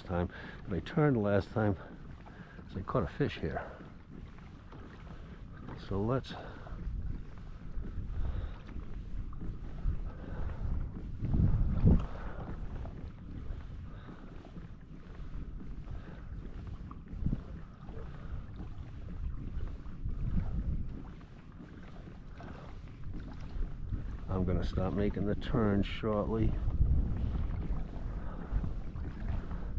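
Small waves lap gently against a kayak's hull.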